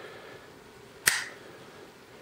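A folding knife blade snaps open and locks with a sharp click.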